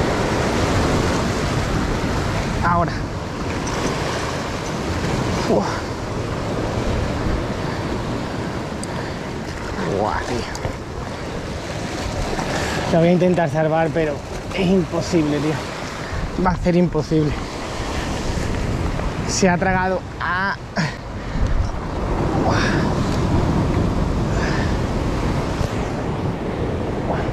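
Waves surge and crash against rocks close by.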